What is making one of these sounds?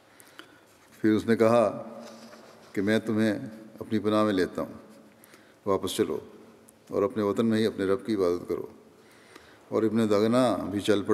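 An elderly man speaks slowly and calmly through a microphone in a large echoing hall.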